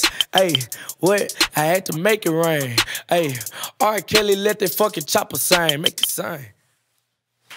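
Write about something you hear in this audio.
A young man raps rhythmically and quickly into a close microphone.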